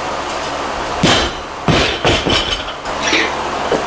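A loaded barbell with rubber bumper plates drops onto a lifting platform with a heavy thud.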